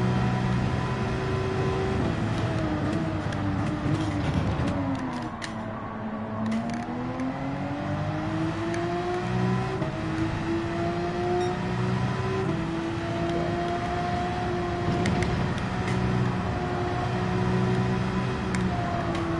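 A racing car engine roars, dropping in pitch as the car brakes into a corner and rising again as it speeds up.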